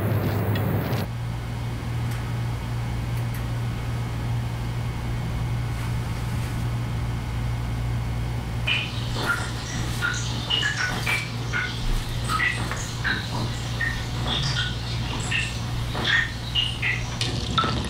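A printer hums steadily.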